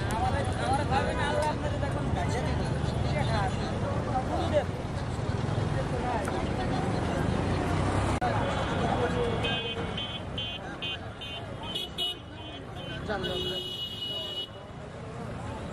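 Many voices of men chatter all around outdoors.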